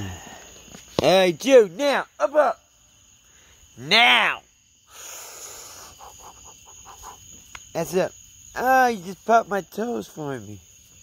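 A dog whines close by in short, rising and falling cries.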